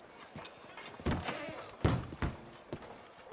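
A wooden door creaks open and bangs.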